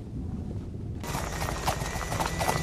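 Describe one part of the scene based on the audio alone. Horses gallop over the ground.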